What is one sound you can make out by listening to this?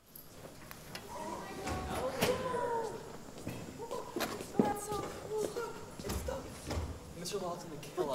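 Young actors speak and call out on a stage, heard from a distance in an echoing hall.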